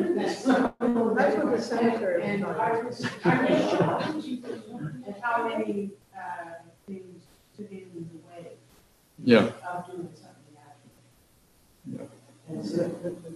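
An elderly man speaks calmly in a room with some echo, heard through a microphone.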